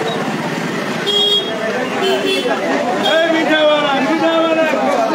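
A crowd of people chatters in a busy street.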